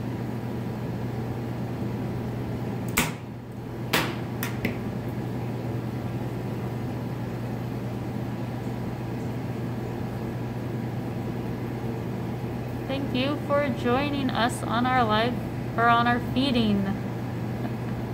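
An aquarium pump hums steadily.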